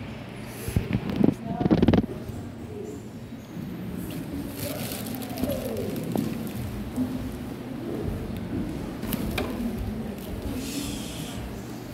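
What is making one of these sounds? Footsteps tap on a hard floor in an echoing hall.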